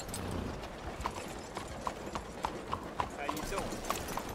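A horse's hooves clop steadily on cobblestones.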